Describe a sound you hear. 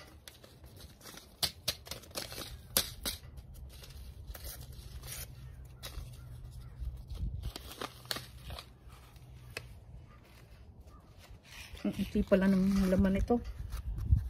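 A paper seed packet rustles and crinkles close by.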